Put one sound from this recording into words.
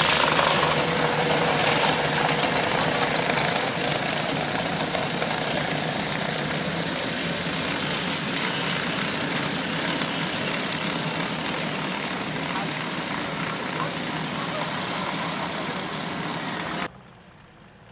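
An armoured vehicle's engine roars and rumbles close by.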